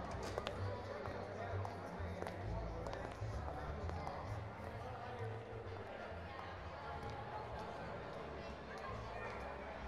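Footsteps click on a hard floor in a large echoing hall.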